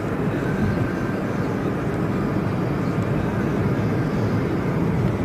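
Road and wind noise roar steadily from inside a moving car.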